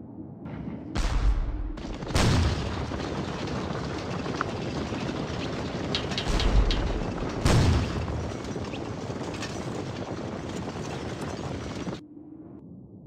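Many horses' hooves rumble over the ground.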